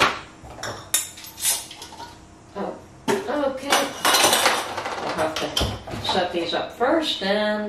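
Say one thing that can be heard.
Glass jars clink and knock against each other.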